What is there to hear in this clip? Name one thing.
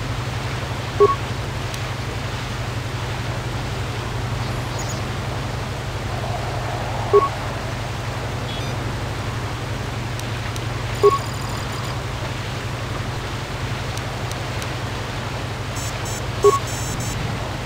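Short electronic beeps sound now and then as menu choices change.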